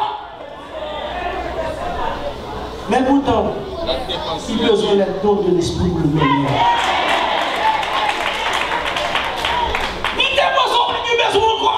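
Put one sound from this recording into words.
A man preaches forcefully into a microphone over loudspeakers in a large echoing hall.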